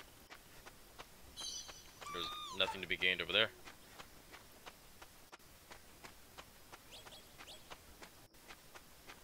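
Footsteps patter quickly through grass and over a dirt path.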